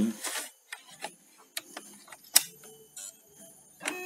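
A disc drive tray slides in and clicks shut.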